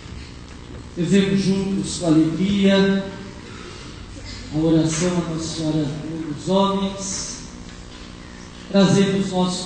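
A man chants through a loudspeaker.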